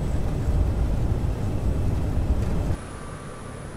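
Jet engines roar loudly and steadily up close.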